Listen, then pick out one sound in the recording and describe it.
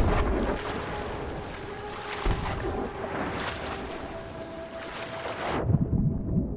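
Waves splash on the open sea.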